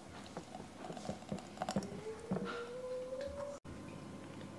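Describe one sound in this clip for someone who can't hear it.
A thick drink pours into a glass jar, rising in pitch as the jar fills.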